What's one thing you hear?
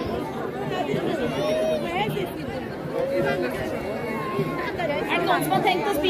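Children shout and call out in the crowd.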